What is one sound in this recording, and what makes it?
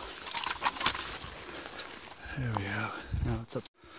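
Footsteps crunch and rustle through grass and dry twigs.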